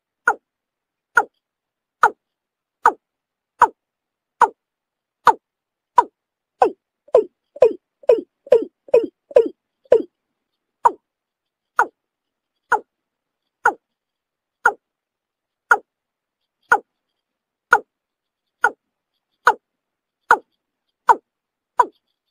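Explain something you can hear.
A bird gives short, sharp calls over and over, quickening for a while in the middle.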